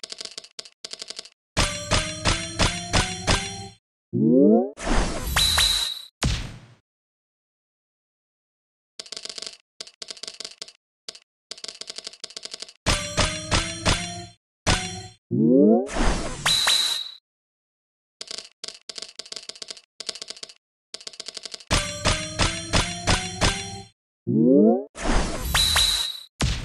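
Game gems chime and pop as they clear in quick rising combos.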